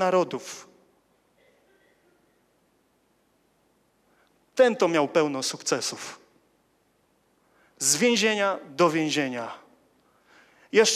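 A young man speaks with animation into a microphone, with long pauses.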